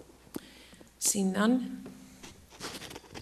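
A woman speaks briefly through a microphone.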